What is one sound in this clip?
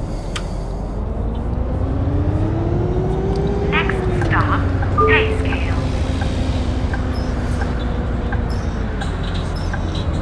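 A bus engine's pitch rises and falls as it speeds up and slows.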